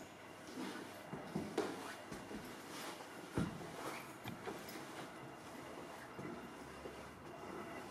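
Footsteps thud softly on wooden stairs.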